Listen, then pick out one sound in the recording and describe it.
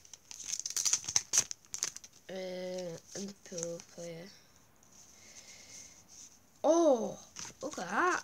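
Cards rustle and flick in a boy's hands.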